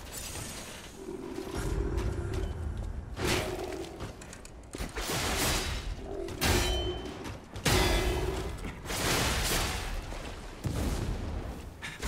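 Fiery blasts roar and crackle.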